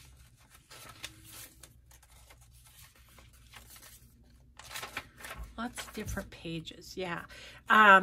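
Paper pages rustle as they are turned by hand.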